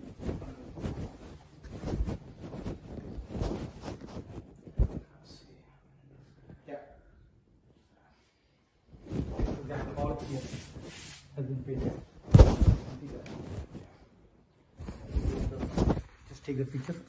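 Fabric rubs and rustles against the microphone.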